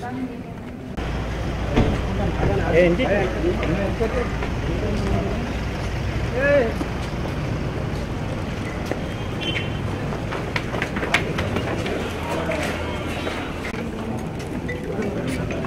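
A crowd of men chatter nearby.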